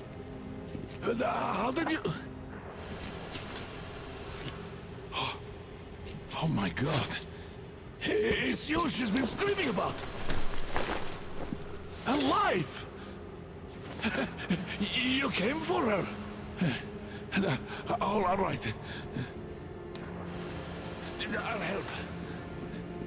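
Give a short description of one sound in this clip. An elderly man speaks with animation close by.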